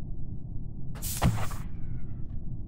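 A game whoosh sweeps past.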